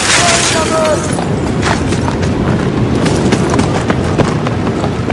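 Footsteps crunch over rubble and broken debris.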